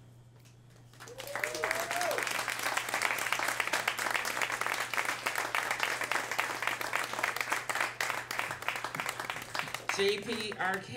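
An audience claps and cheers in a small room.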